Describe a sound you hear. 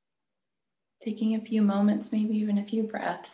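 A woman speaks calmly and close to the microphone, heard through an online call.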